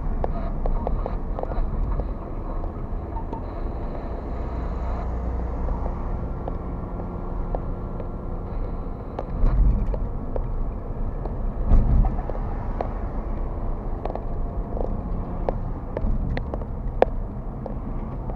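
Tyres roll on the road surface with a low rumble.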